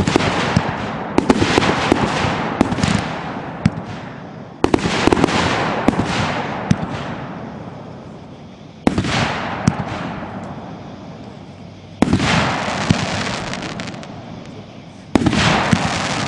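Fireworks crackle and pop sharply.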